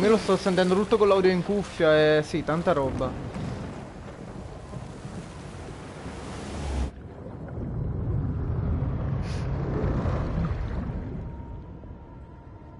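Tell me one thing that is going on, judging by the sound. Waves churn and rush around a swimmer.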